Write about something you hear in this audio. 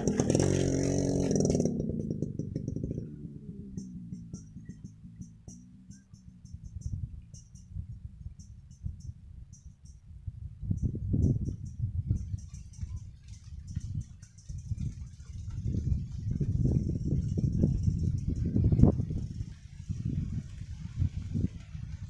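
A motorbike engine drones in the distance and slowly fades.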